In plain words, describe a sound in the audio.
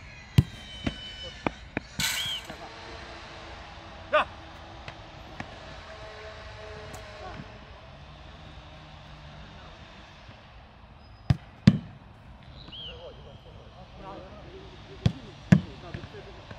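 A football thumps off a goalkeeper's gloves.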